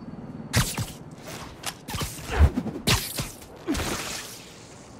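Heavy blows land with sharp thuds and whooshes.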